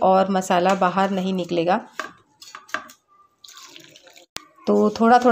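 Hands rub and squeeze dry flour in a metal bowl with a soft rustle.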